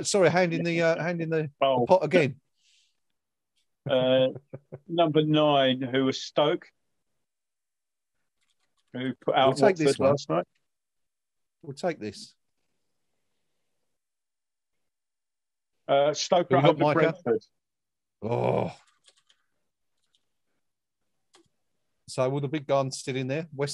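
A middle-aged man talks with animation into a close microphone, heard through an online call.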